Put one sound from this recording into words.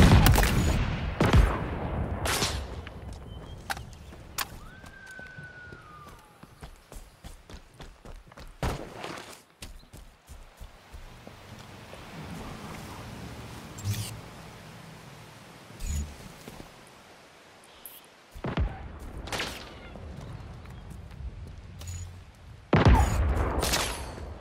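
Footsteps crunch over grass and rock.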